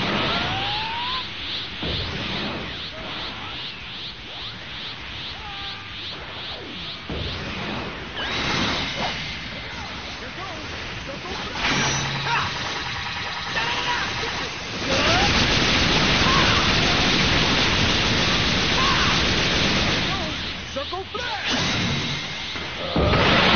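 Energy blasts roar and crackle in a fight.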